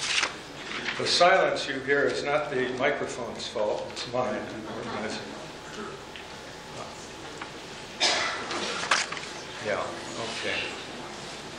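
An elderly man speaks calmly into a microphone, as if reading out.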